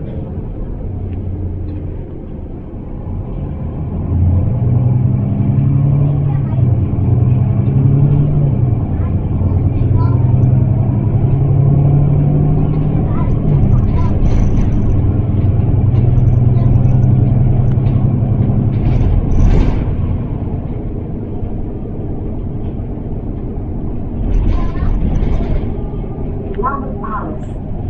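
A bus engine hums and rises in pitch as the bus drives along.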